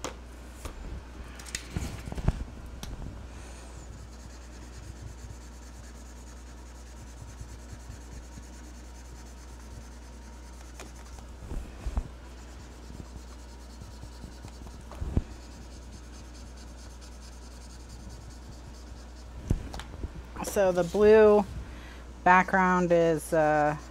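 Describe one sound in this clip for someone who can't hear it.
A marker squeaks and scratches softly across paper.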